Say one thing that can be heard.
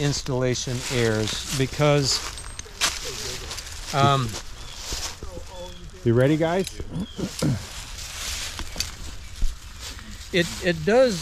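A middle-aged man talks calmly and clearly into a close microphone.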